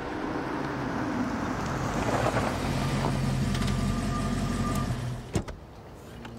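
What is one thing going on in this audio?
A car engine rumbles nearby.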